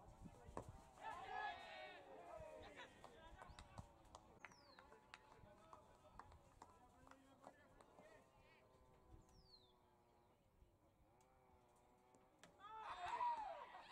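Players shout loudly outdoors on an open field.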